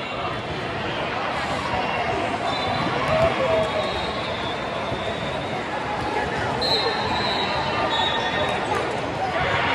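A volleyball thuds against hands.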